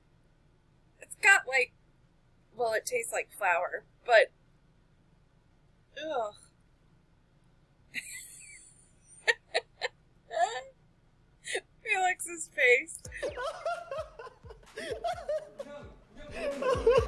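A young woman talks cheerfully into a microphone, close by.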